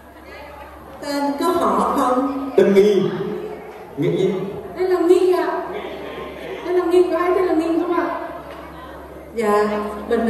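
A woman sings into a microphone through loudspeakers in a large echoing hall.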